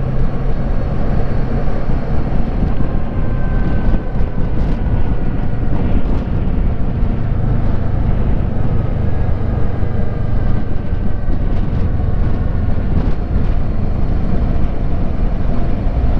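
A motorcycle engine hums steadily while riding at speed.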